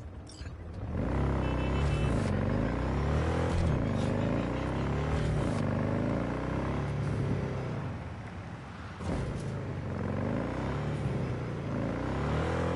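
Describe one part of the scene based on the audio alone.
A motorcycle engine revs and hums as it rides.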